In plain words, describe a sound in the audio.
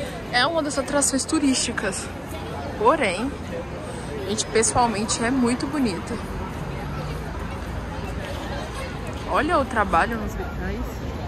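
A crowd of people talks and chatters nearby outdoors.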